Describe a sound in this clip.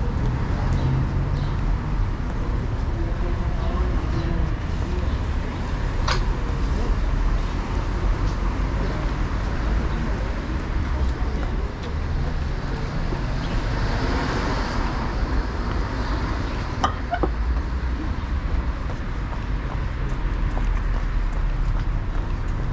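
Footsteps tap along a pavement outdoors.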